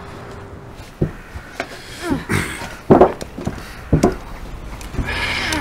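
Tools knock and tap against a car's metal body.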